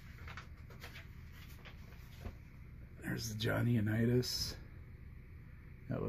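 A book page turns with a soft paper rustle.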